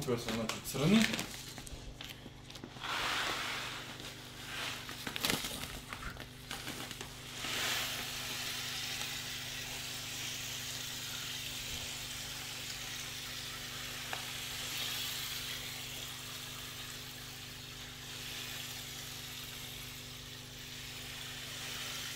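Air bubbles fizz and gurgle steadily in water.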